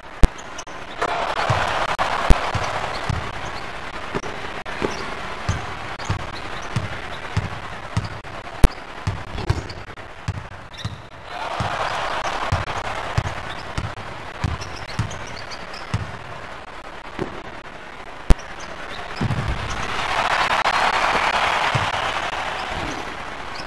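A video game arena crowd cheers in swelling waves.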